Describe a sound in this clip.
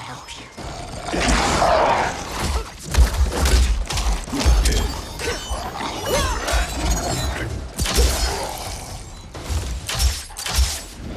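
Blows land with heavy thuds and smacks in a fight.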